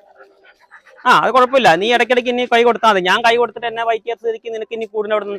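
A dog whines and yelps loudly and close by.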